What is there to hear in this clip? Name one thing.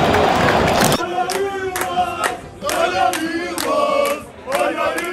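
Men cheer and shout excitedly close by.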